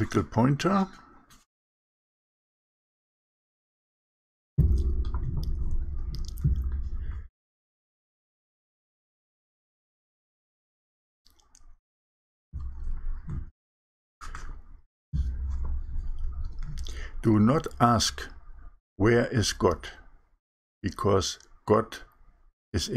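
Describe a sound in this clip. A middle-aged man talks calmly and close to a microphone, with pauses.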